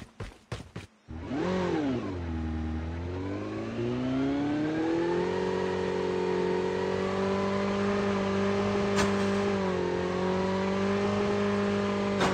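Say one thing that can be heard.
A motorbike engine starts and revs, then hums steadily.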